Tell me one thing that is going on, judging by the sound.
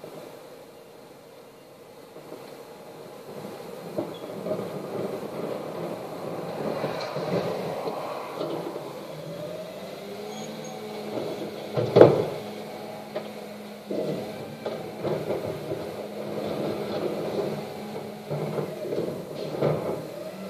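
A garbage truck's engine idles and its compactor whines, heard through a window.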